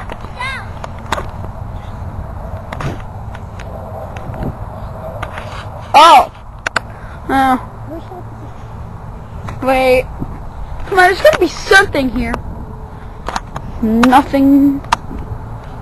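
A young child shouts and calls out loudly outdoors.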